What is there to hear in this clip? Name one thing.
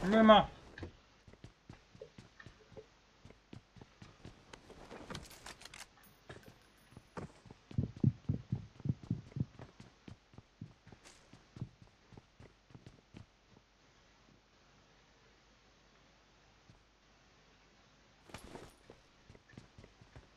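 Footsteps thud quickly and evenly on a hard floor.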